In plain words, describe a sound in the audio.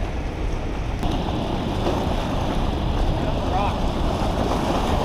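Water rushes and churns loudly over a dam spillway nearby.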